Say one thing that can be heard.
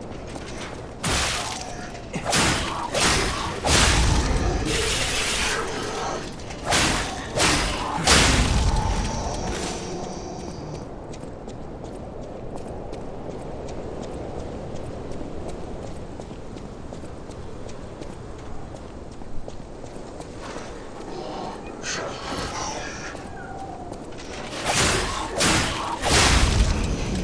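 Heavy blows and clashing strikes land in a fight.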